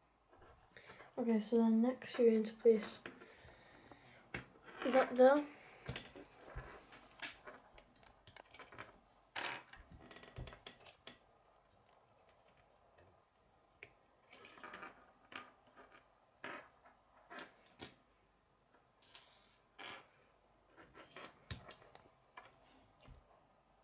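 Small plastic toy pieces click and snap together.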